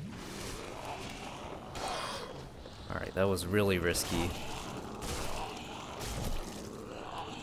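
A sword swishes through the air and strikes flesh.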